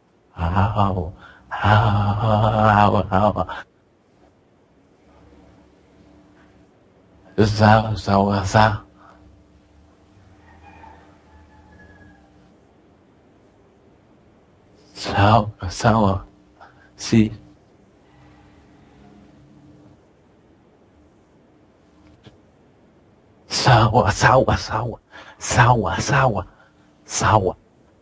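A man speaks in short bursts close to a headset microphone.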